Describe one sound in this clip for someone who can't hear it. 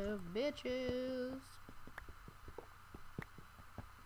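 A pickaxe chips at a stone block with short knocks.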